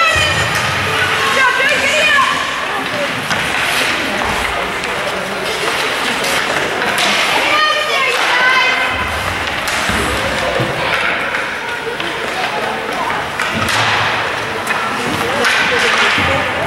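Skates scrape and glide across ice in a large echoing rink.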